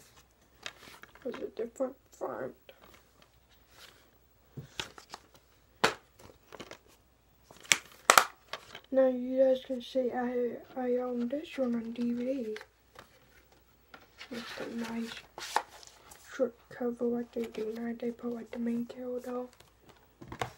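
A boy talks close to the microphone.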